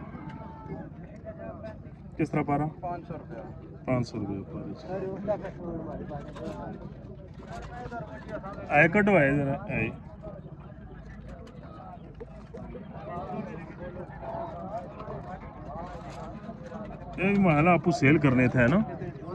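Pigeons coo softly close by.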